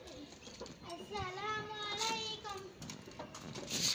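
A metal door bolt slides open with a scrape.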